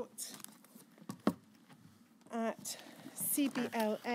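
Paper rustles as a woman handles sheets.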